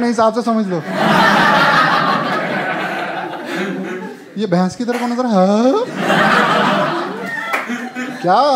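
An audience laughs and cheers loudly.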